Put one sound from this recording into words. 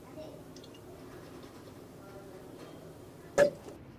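Thick syrup pours into a glass jar.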